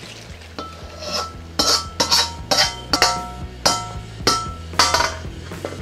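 A wok knocks against a metal bowl.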